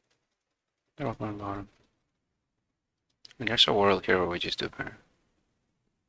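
A young man speaks briefly and with animation into a close microphone.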